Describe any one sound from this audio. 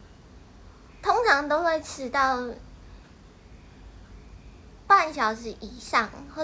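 A young woman speaks close to a microphone in a lively, expressive voice.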